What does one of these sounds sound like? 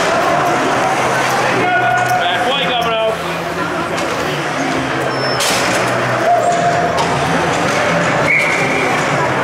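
Skates scrape and carve across an ice rink.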